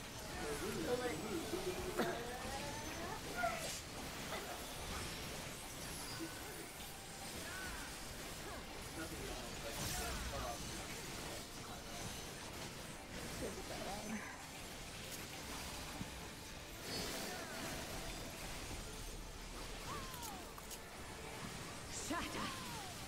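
Game music and spell effects blast and shimmer throughout.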